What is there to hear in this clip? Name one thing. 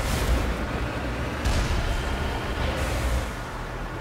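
Thrusters roar as a vehicle boosts upward.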